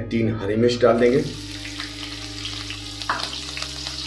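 Chopped chillies drop into hot oil with a burst of sizzling.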